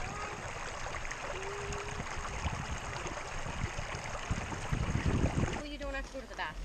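A shallow stream ripples and splashes over stones close by.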